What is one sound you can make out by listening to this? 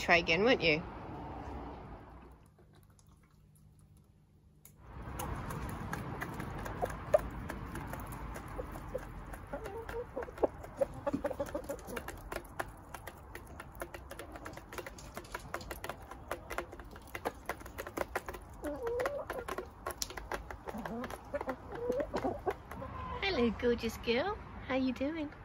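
Hens cluck and coo softly close by.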